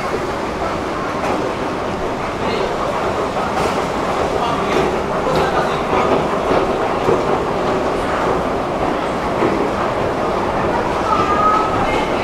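An escalator hums and rattles steadily as it moves.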